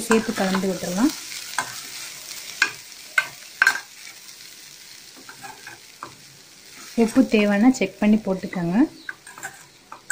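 A spoon clinks and scrapes against a metal pan as food is stirred.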